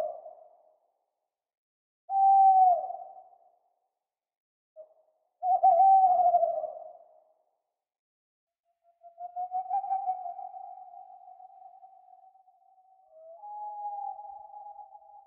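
An owl hoots in long, low calls with pauses between them.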